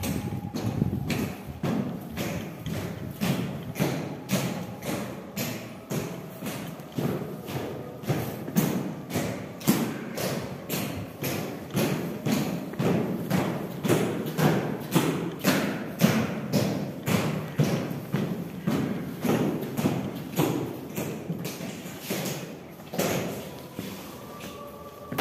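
Boots strike stone steps in slow, heavy marching footsteps that echo in a hard, enclosed space.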